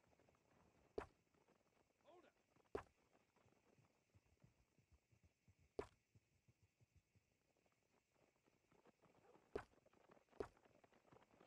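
A soft click sounds each time a menu option changes.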